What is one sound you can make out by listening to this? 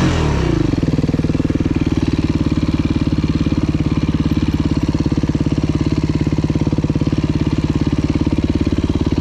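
A dirt bike engine idles steadily.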